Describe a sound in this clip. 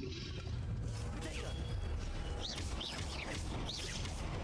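A magic shield crackles with electric sparks.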